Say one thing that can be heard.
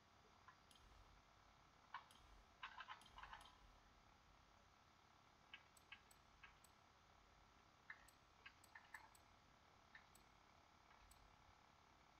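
Short electronic clicks sound as a menu is scrolled through.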